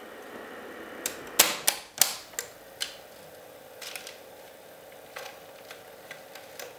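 Buttons on a cassette recorder click and clunk sharply as they are pressed.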